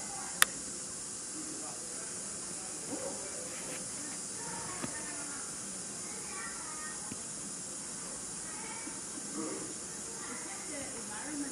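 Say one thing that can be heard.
A chimpanzee pads softly over the ground.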